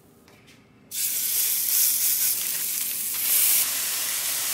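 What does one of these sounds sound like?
Ground beef sizzles in a hot cast-iron skillet.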